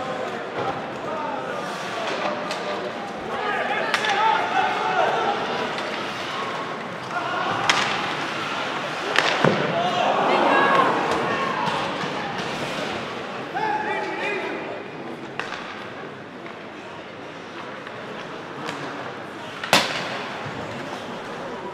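A crowd murmurs and chatters in a large echoing arena.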